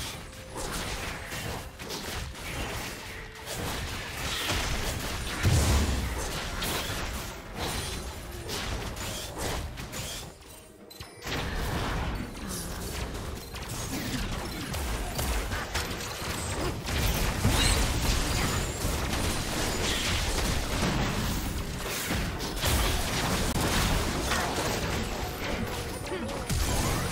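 Spell blasts and weapon hits of an online battle game crackle and thud.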